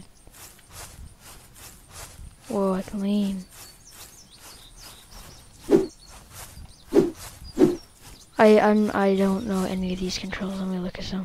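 Footsteps tread steadily across grass.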